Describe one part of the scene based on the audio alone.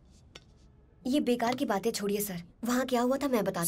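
A young woman speaks sharply, close by.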